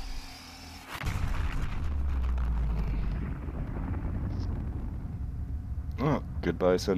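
A huge explosion booms with a deep rumble.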